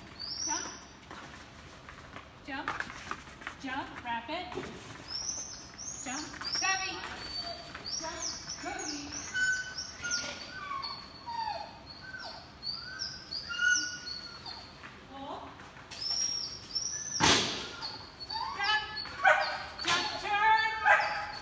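A woman calls out commands to a dog with animation, echoing in a large hall.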